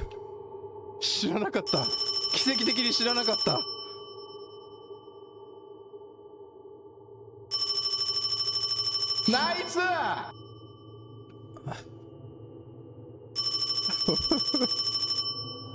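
A young man talks excitedly into a close microphone, in short bursts.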